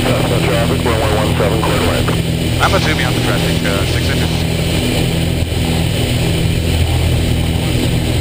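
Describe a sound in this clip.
Wind rushes past the cockpit.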